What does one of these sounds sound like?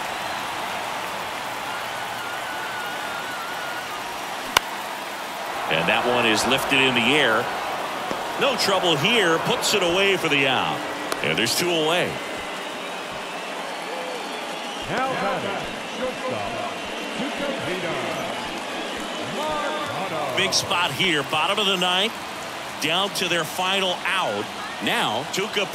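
A crowd cheers in a large ballpark.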